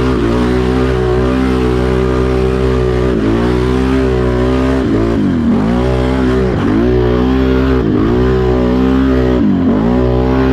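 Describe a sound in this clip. Tyres churn through mud and soft ground.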